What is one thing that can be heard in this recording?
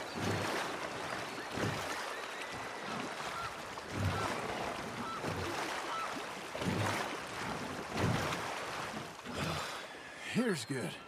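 Oars splash and pull through water in a steady rhythm.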